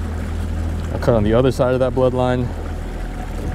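A man speaks nearby in a casual tone.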